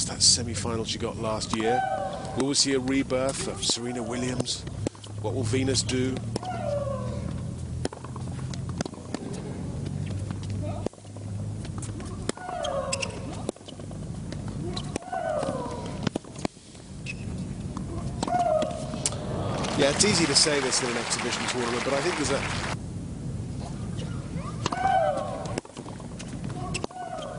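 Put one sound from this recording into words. A tennis ball is struck sharply by rackets, back and forth.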